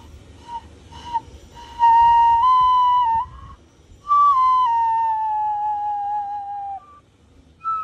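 A whistle plays a long clear tone that slowly slides down.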